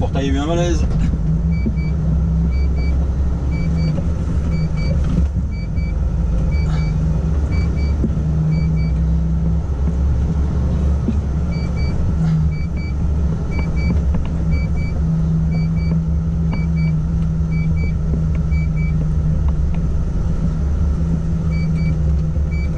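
A truck engine hums low and steadily from inside the cab.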